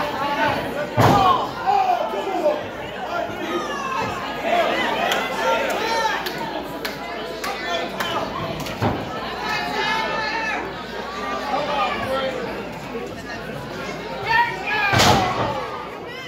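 Bodies thud heavily onto the ring mat.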